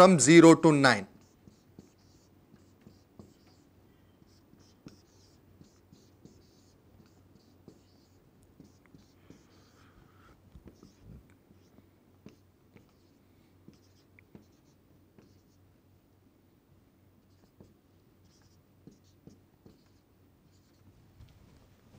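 A marker squeaks and taps faintly.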